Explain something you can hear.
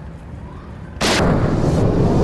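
A rifle shot cracks loudly.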